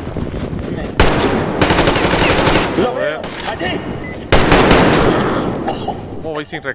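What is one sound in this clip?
A gun fires loud bursts.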